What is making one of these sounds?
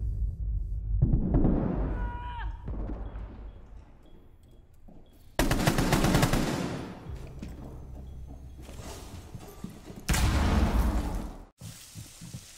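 A rifle fires loud bursts of gunshots with heavy booming echoes.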